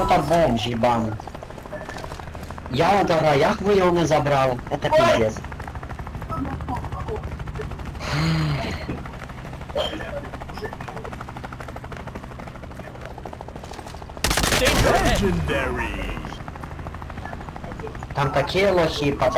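A helicopter's rotor drones nearby.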